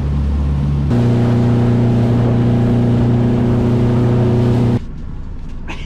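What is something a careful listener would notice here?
Water splashes and rushes past a moving boat.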